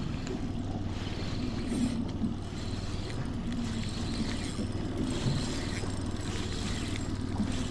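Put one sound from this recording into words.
A fishing reel clicks and whirs as its handle is wound.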